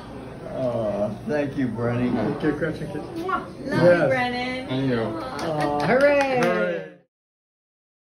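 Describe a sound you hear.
Several adults talk and laugh cheerfully close by.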